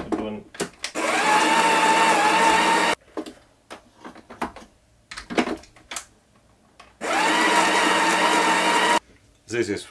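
A coffee grinder whirs loudly in short bursts.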